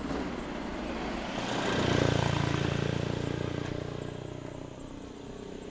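A vehicle engine rumbles past nearby.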